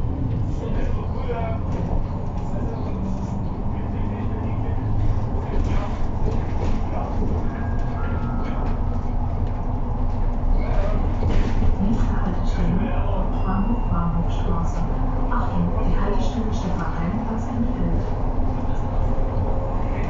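A bus interior rattles and clatters over the road.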